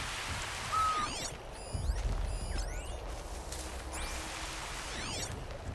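A sharp electronic scanning sweep pulses and hums.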